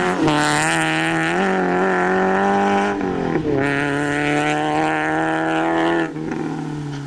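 Tyres crunch and spray gravel on a dirt road.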